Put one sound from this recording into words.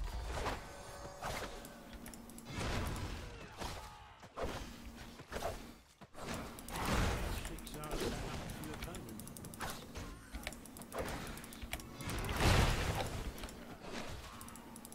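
Game sound effects of fighting clash and burst.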